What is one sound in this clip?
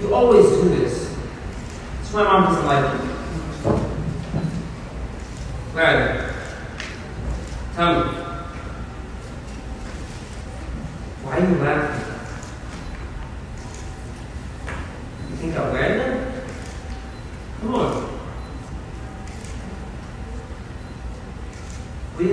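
A man speaks into a microphone over loudspeakers, in a large room with some echo.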